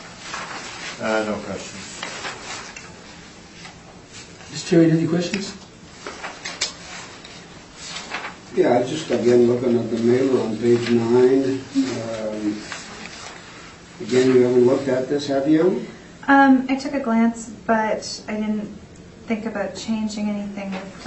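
Adults talk quietly in a small room, heard through a distant microphone.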